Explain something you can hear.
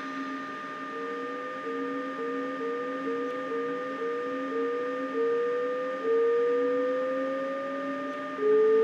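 An electric train's motor whines in short rising steps as it speeds up.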